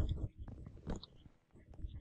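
Blocks crumble with a short gritty crunch as they are dug out.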